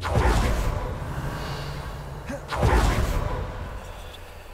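A magic spell whooshes and crackles loudly.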